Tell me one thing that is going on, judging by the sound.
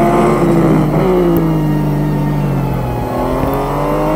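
A racing car engine slows and winds down while braking for a corner.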